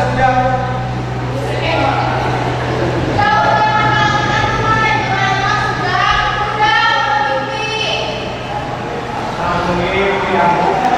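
A young woman speaks loudly and expressively into a microphone in an echoing hall.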